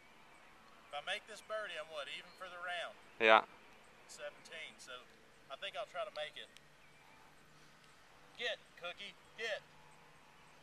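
A man speaks calmly, close by, outdoors.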